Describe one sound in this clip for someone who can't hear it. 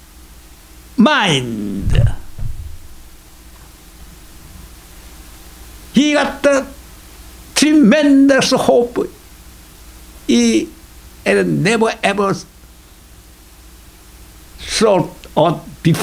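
An elderly man speaks with passion into a microphone, in bursts with pauses.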